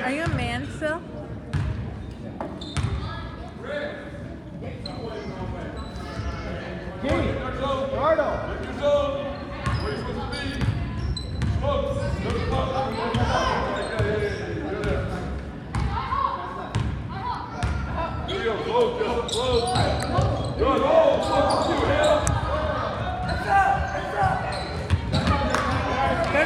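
A basketball bounces on a wooden floor, echoing in a large hall.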